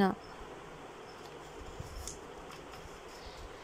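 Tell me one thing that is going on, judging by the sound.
A paper page rustles softly as it is turned.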